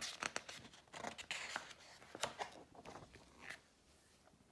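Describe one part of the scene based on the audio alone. Paper pages rustle and flip as a book's page is turned.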